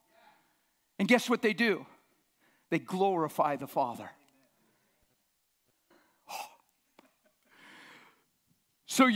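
An elderly man speaks with animation through a microphone in a large echoing hall.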